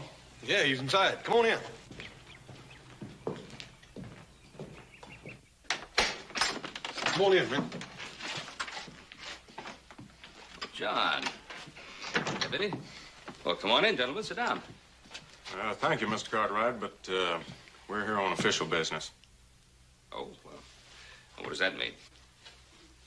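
Men talk with one another indoors, taking turns.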